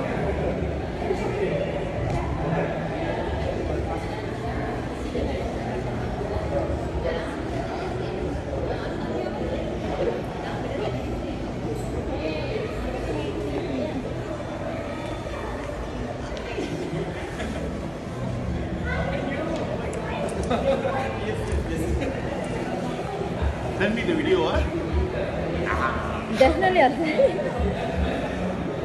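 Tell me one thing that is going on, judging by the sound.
A murmur of voices fills a large echoing hall.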